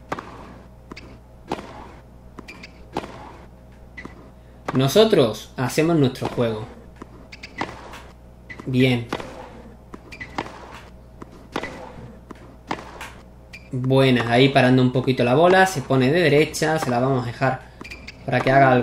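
A tennis ball is struck back and forth with sharp pops of rackets.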